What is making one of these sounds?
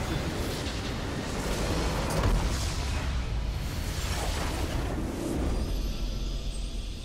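A game's explosion roars and crashes loudly.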